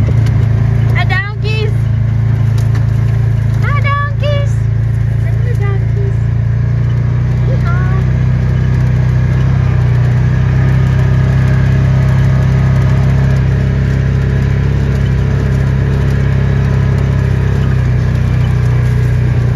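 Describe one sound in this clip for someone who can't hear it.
A vehicle engine hums steadily up close.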